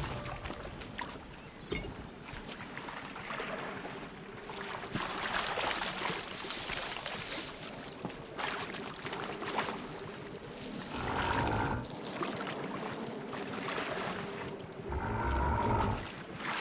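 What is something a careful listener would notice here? Water splashes and swishes as someone wades through it.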